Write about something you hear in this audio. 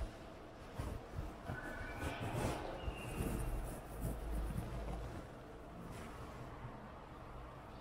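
Footsteps walk across a floor.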